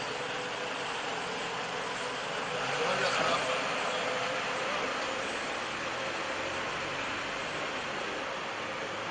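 A bus engine hums as the bus drives past and away.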